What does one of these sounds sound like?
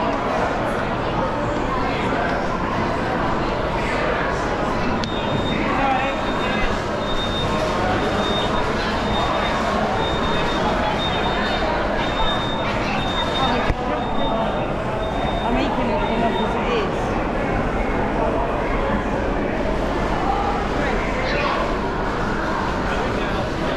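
A crowd murmurs and chatters in a large, busy indoor hall.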